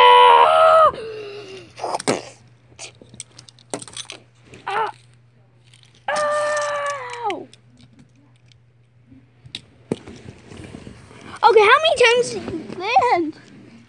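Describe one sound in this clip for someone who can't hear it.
Small toy cars knock and clatter as a hand handles them.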